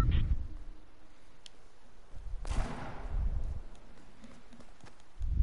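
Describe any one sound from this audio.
Footsteps thud quickly across a tiled roof.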